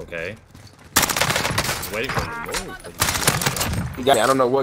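Rapid gunfire bursts from a game.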